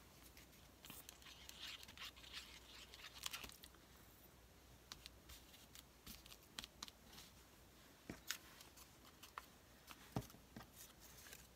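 Paper and fabric rustle and crinkle as hands handle them.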